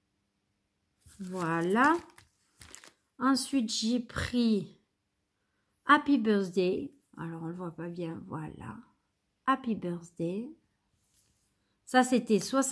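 A woman talks calmly and close to a microphone, in short bursts.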